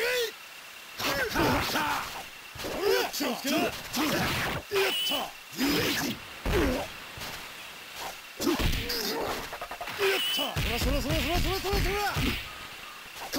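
Swords clash and blows land in a fast video game fight.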